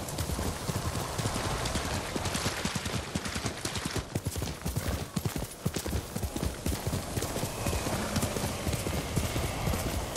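Horse hooves gallop quickly over soft ground.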